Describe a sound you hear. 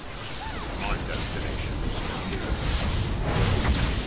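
Fighting figures clash with bursts of magical blasts and hits.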